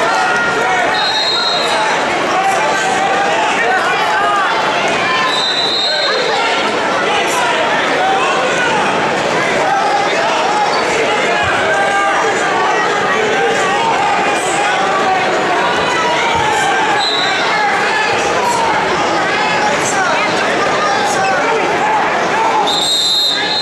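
A referee blows short whistle blasts.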